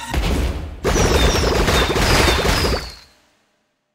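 Bright sparkly chimes twinkle.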